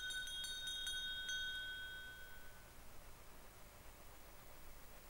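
Racing bicycles whir around a track.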